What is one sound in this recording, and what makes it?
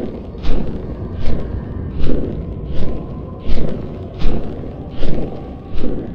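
Large wings flap with steady, regular whooshing beats.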